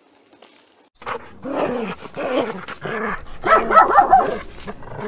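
Dogs growl and bark playfully close by.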